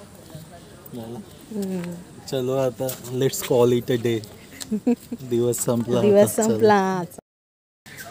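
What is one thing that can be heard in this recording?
A young man talks animatedly close by.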